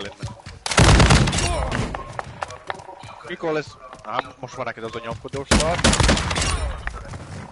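A rifle fires loud bursts of shots.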